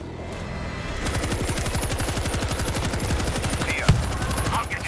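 A heavy machine gun fires in rapid, steady bursts.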